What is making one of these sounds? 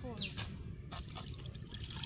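Water splashes as it is poured onto meat.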